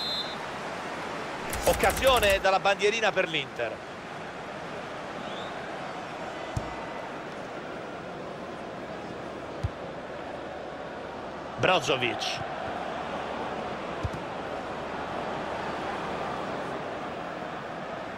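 A stadium crowd murmurs.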